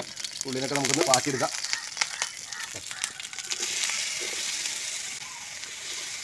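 An egg sizzles as it fries in oil in a pan.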